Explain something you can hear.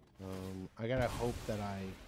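A magical whoosh and chime sound out as a spell takes effect.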